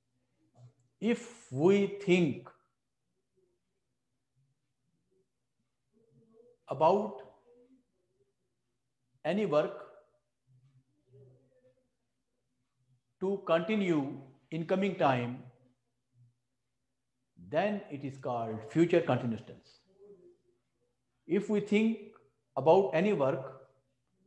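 A middle-aged man speaks calmly and clearly in short phrases, close by, with pauses between them.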